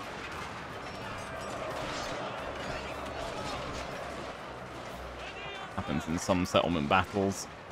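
A large battle roars with clashing weapons.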